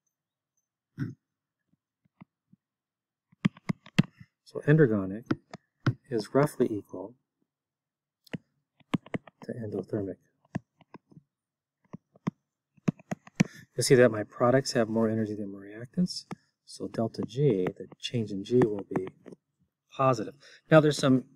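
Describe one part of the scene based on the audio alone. A man speaks calmly into a close microphone, explaining with pauses.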